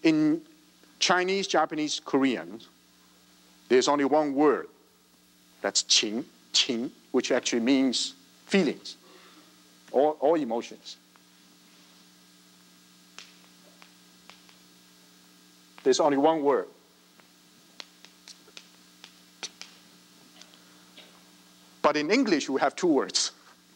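A man lectures with animation, heard through a microphone in an echoing hall.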